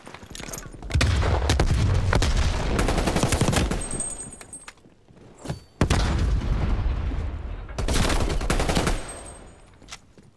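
Grenades explode with deep, rumbling booms.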